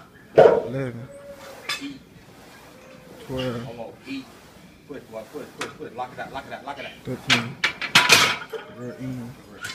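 A barbell clanks as weight plates rattle.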